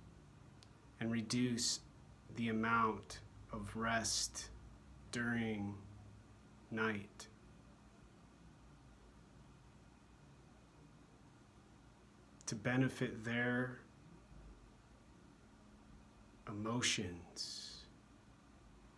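A man talks calmly and closely into a microphone, with pauses.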